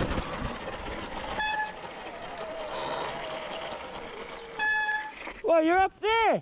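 Bicycle tyres roll and rattle over wet, rough ground.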